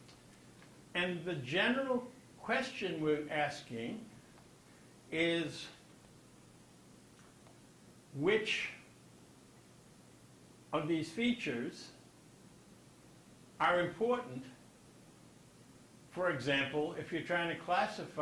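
An elderly man speaks calmly in short bursts with pauses.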